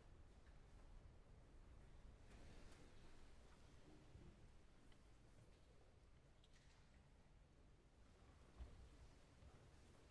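An orchestra plays very softly in a large, echoing hall.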